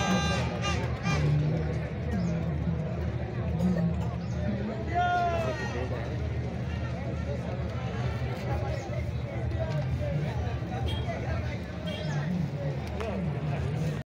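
Men talk and shout nearby.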